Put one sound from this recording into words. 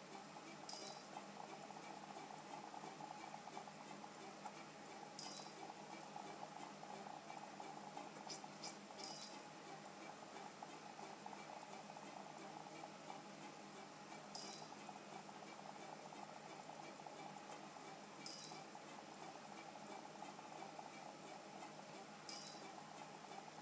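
Short chimes ring out from a handheld console every few seconds.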